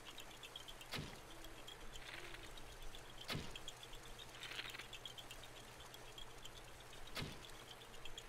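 Lightning strikes nearby with sharp cracks.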